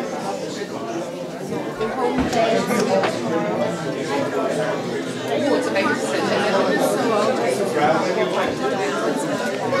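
A man talks with children close by.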